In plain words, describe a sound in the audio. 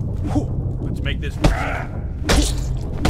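A man speaks a gruff taunt.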